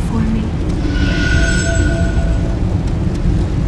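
A game menu chime rings and slowly fades.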